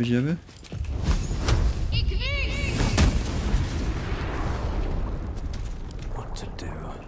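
Fire bursts with a loud roar that slowly fades.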